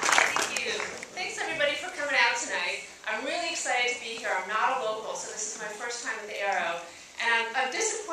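A young woman speaks with animation into a microphone over a loudspeaker in a large hall.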